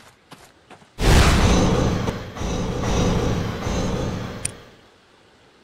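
A blade swishes and strikes in a fight.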